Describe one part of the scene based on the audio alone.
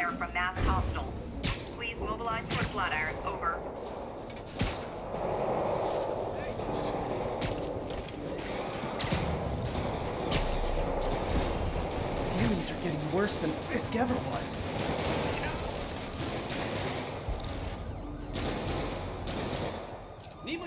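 Web lines snap and whip with sharp thwips.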